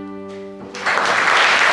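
An acoustic guitar strums along.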